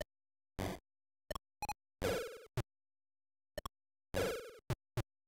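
Short electronic game bleeps and chimes sound in quick bursts.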